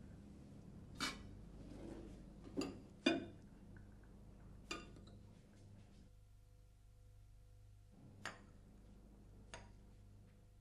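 Dishes clink on a table.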